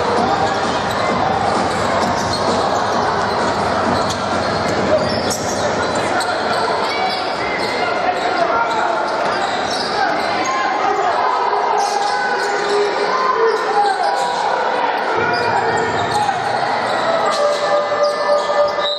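A large crowd murmurs and cheers in an echoing indoor hall.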